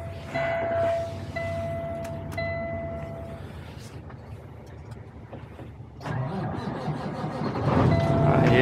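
A truck's diesel engine rumbles low at idle.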